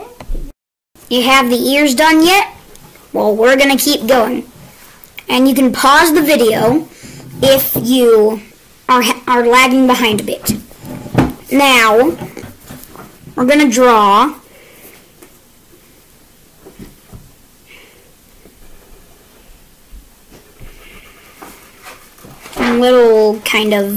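A child talks with animation close by.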